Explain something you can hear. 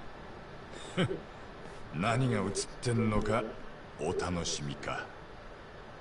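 A young man speaks casually with a smug chuckle, close by.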